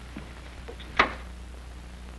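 A door shuts with a sharp knock.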